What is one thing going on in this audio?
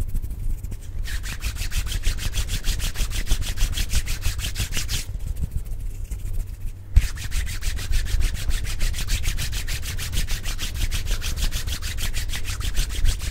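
Hands rub and swish rapidly right up against a microphone.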